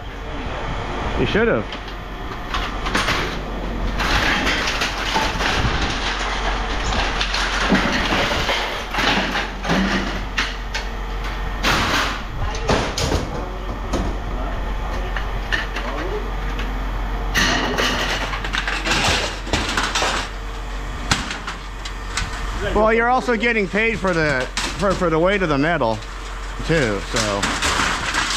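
Aluminium grates clatter and clang as they are tossed into a metal bin.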